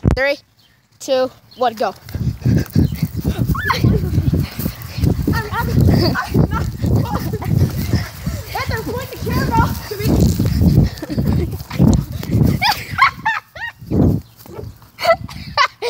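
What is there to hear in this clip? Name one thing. A boy shouts excitedly nearby.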